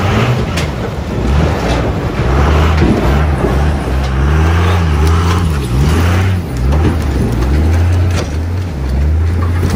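Branches snap and crack as a truck pushes through brush.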